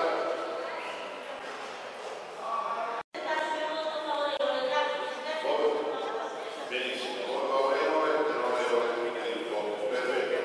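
A large crowd chatters and murmurs in an echoing hall.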